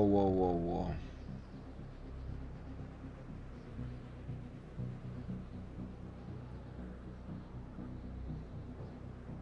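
A young man talks calmly and quietly into a microphone.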